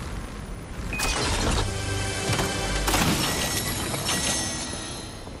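A treasure chest opens with a bright, shimmering chime.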